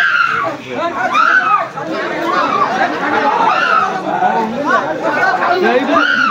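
A close crowd of men shouts over one another.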